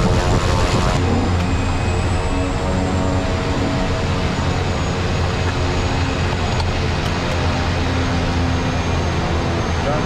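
A propeller plane's engine drones steadily, heard from inside the cabin.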